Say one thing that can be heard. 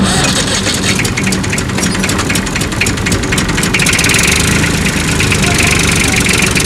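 A tractor engine idles nearby with a steady rumble.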